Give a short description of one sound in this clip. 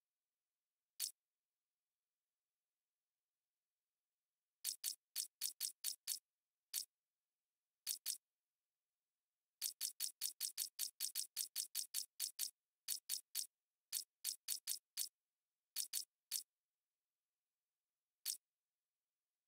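Short electronic menu clicks tick in quick bursts.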